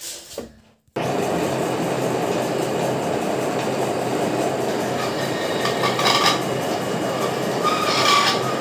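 A lathe motor runs with a steady whirring hum.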